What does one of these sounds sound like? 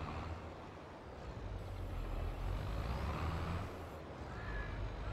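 A harvester engine rumbles steadily.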